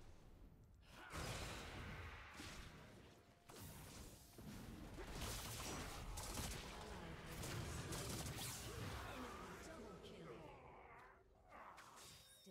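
Magic blasts and blows crash during a fight.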